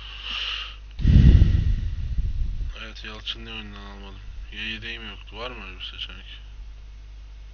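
A man speaks briefly close to a microphone.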